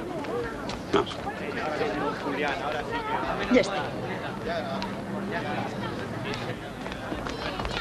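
A crowd of men and women murmurs and chatters nearby.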